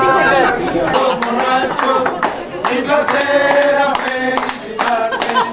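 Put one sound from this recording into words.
A group of men and women sing together loudly.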